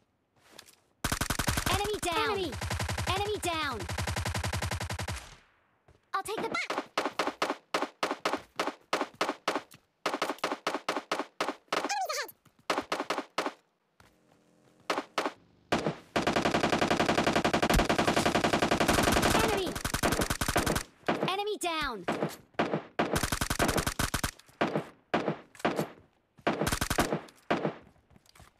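Rapid gunfire rattles in short and long bursts.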